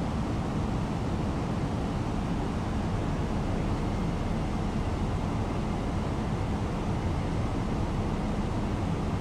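Jet engines roar steadily with a low rumble.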